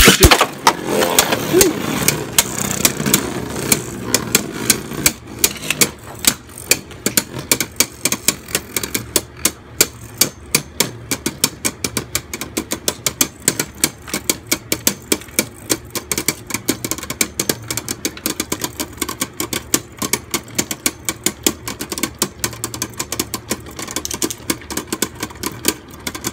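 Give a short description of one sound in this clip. Spinning tops clack against each other in rapid bursts.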